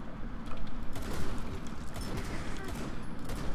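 A rifle fires a few quick shots.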